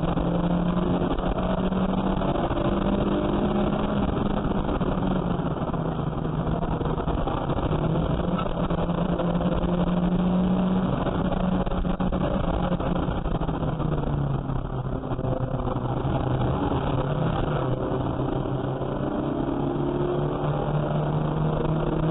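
A car engine roars loudly from inside the cabin, rising and falling as the gears change.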